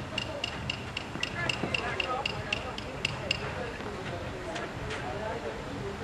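A man speaks calmly nearby, outdoors.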